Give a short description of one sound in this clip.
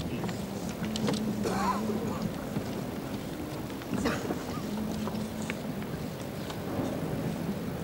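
A large crowd murmurs outdoors in a wide open space.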